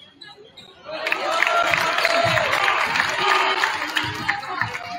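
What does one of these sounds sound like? A crowd cheers loudly in an echoing gym.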